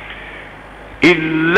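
An elderly man begins chanting loudly in a drawn-out voice through a microphone.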